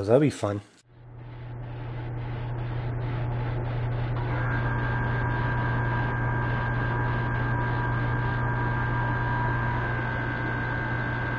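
An airbrush sprays with a steady hiss.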